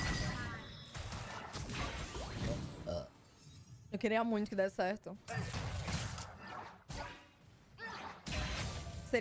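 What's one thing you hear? Game combat effects clash and burst.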